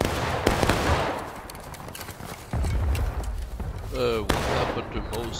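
Gunshots crack and boom across an open field.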